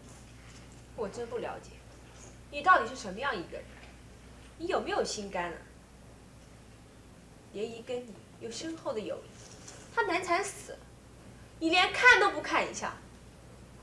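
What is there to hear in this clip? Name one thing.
A young woman speaks with feeling, close by, her voice rising.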